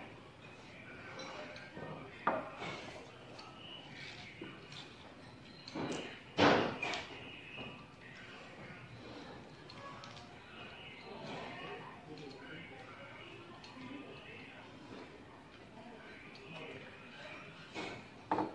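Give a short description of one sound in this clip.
People chew and slurp food close by.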